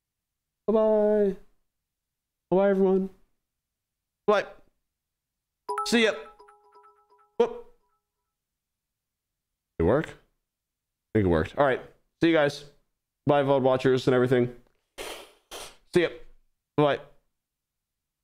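A young man speaks into a microphone with animation, in short bursts.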